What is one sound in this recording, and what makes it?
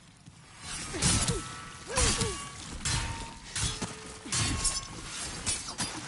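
A creature grunts and groans in pain.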